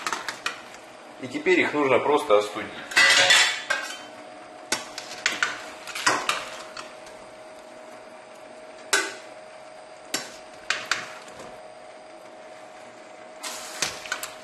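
Metal tongs clink against a steel pot.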